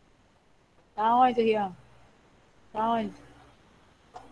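A young girl speaks briefly through an online call.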